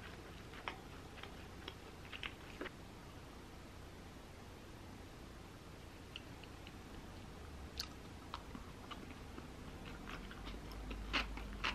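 A wooden spoon and chopsticks clink and scrape against a bowl.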